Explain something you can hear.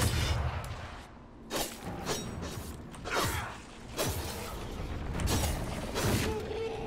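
Swords clash and magic blasts whoosh in a fight.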